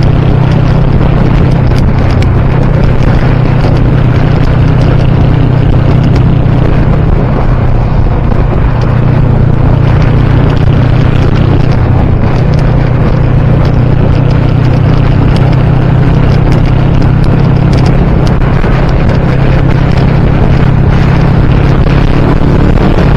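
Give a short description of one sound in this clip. A motorcycle engine hums steadily at highway speed.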